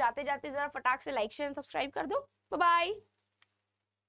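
A young woman speaks brightly and with animation into a microphone.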